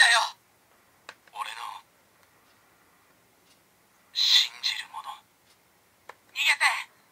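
A plastic button clicks under a finger.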